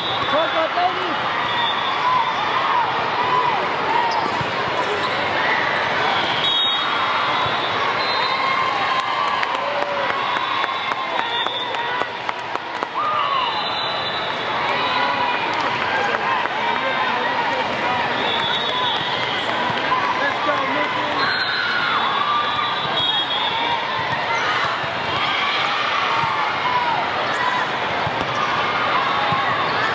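A crowd of voices murmurs and chatters throughout a large echoing hall.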